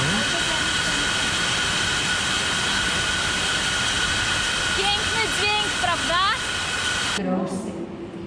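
Machinery hums steadily in a large hall.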